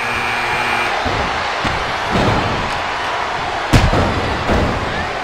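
A loud crowd roars steadily in a large arena.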